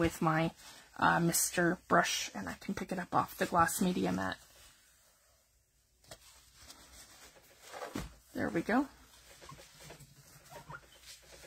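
A cloth wipes softly across a smooth surface.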